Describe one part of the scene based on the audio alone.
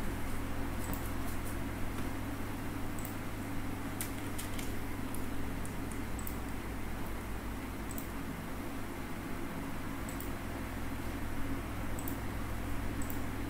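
A young woman speaks calmly into a nearby microphone.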